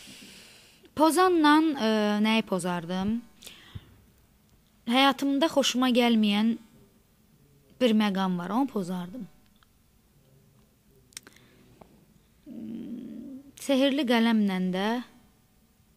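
A young woman speaks calmly and closely into a microphone, in short bursts with pauses.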